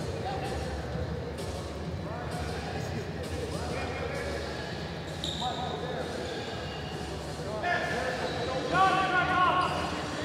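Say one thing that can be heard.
A small crowd murmurs in a large echoing hall.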